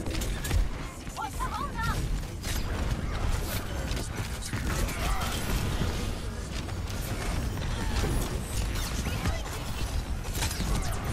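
Gunfire and explosions crack and boom in a fast, chaotic fight.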